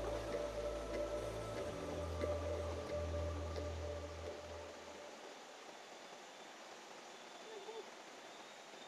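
A stream of water flows gently over rocks.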